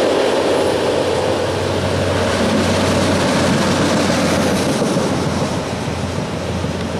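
A small rail vehicle rumbles past on the track.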